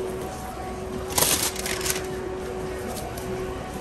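Paper rustles and crinkles as it is pulled out.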